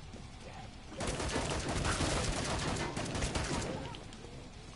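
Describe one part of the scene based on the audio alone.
A gun fires rapidly in loud bursts.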